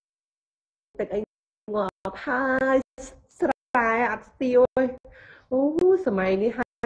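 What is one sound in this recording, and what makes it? A young woman sings with animation close to a phone microphone.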